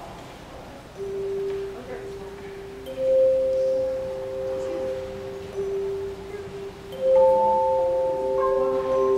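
Handbells ring out sustained notes.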